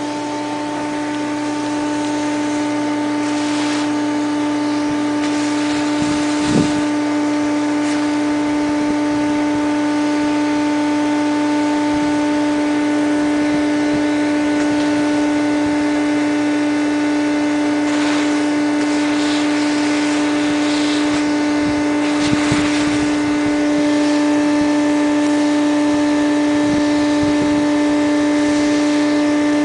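A vacuum motor whines steadily.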